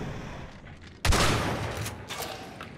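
A pistol fires a single loud shot with a ringing echo.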